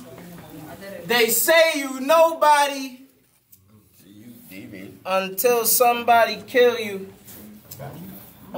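A young man raps forcefully at close range.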